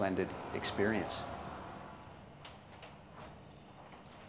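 A sliding door rolls and clicks shut.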